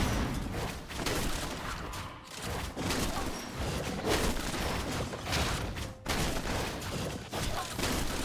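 Video game combat effects clash with hits and magic bursts.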